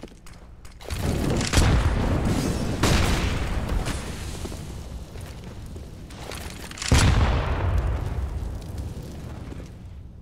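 Grenade explosions boom nearby and rumble away.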